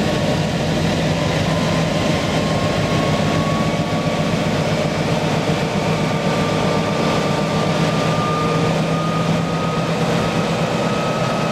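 A diesel locomotive engine rumbles and throbs steadily close by.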